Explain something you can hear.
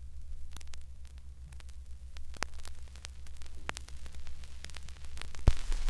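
A vinyl record crackles and pops under the needle.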